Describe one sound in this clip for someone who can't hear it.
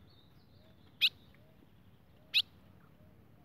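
An ultramarine grosbeak gives short sharp calls.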